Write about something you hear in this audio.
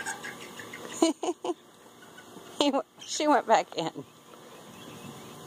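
A chicken clucks.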